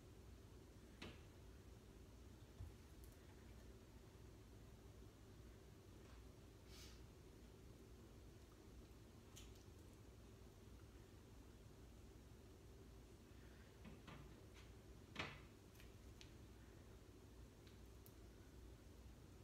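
Small crackles and clicks come as food is handled and picked apart.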